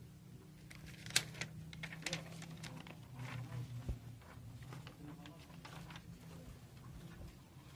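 A plastic sheet crinkles and rustles.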